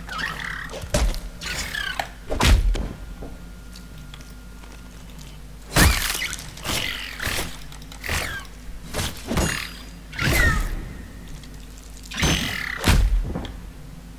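Blows land with heavy thuds.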